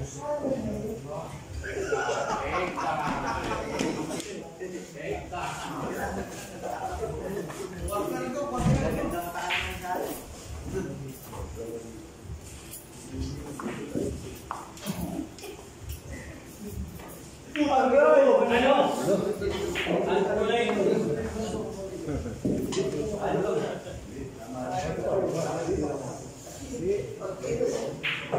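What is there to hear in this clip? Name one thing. Billiard balls click together on a pool table.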